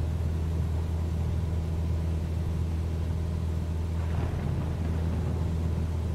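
A small plane's propeller engine drones steadily.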